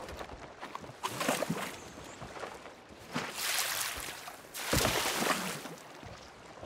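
Water sloshes in a wooden bucket.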